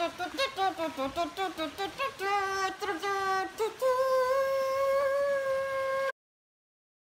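A young woman hums a trumpet-like tune into her hands, close by.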